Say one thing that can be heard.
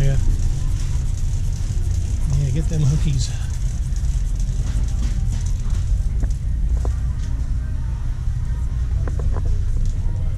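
A shopping cart rattles as it rolls along a hard floor.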